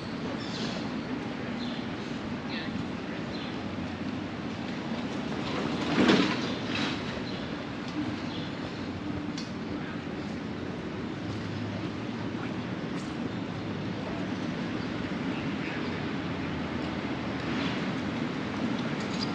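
Traffic hums steadily in the distance outdoors.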